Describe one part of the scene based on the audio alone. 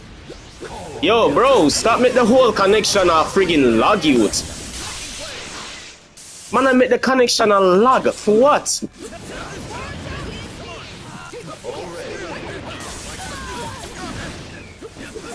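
Energy blasts crackle and whoosh.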